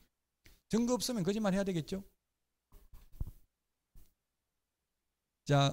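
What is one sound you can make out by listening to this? A middle-aged man speaks into a microphone in an animated lecturing voice.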